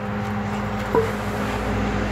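A wooden log thumps as a dog pushes it over.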